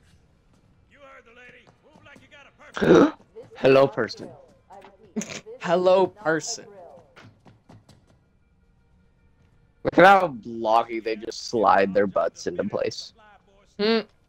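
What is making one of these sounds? A young man talks and laughs close to a microphone.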